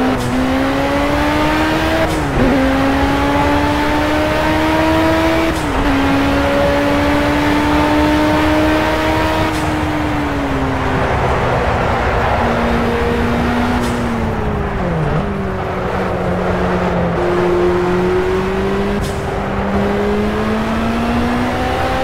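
A racing car engine roars at high revs, dropping briefly with each gear change.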